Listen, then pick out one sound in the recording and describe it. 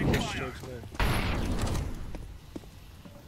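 A smoke grenade bursts with a loud hiss.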